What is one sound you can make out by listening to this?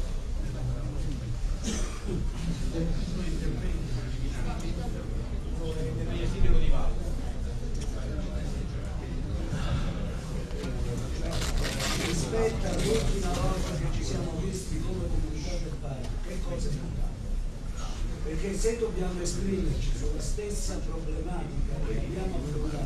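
A man speaks into a microphone over a loudspeaker in an echoing hall.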